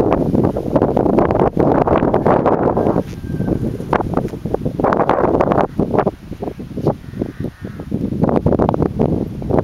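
A dog runs swiftly through grass.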